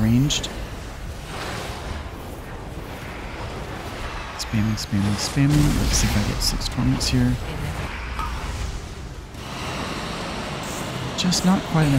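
Magical spell effects whoosh and burst in quick bursts.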